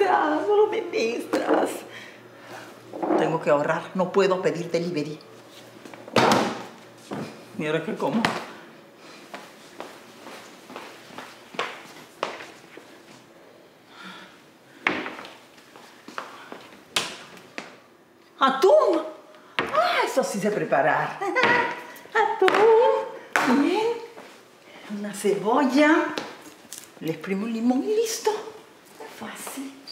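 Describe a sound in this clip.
A middle-aged woman talks with animation, close by.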